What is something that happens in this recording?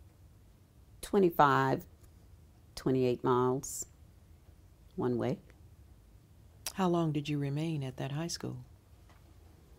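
A woman speaks calmly in short phrases, close to a microphone.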